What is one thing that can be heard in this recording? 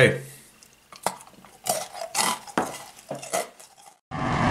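A chocolate bar snaps and crunches.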